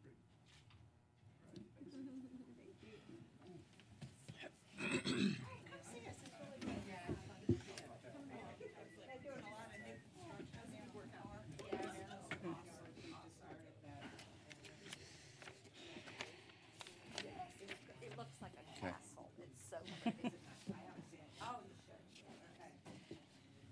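A group of people chatters and murmurs in an echoing room.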